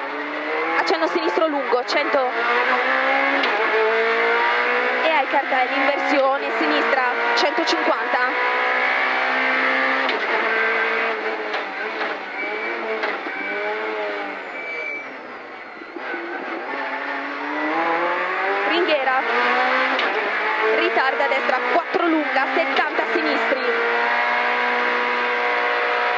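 A rally car engine revs hard, rising and falling as gears change.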